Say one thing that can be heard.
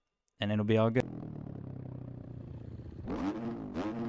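A dirt bike engine idles with a low rumble.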